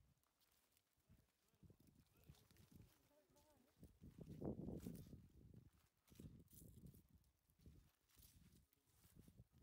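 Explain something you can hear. Footsteps crunch through dry vines and grass.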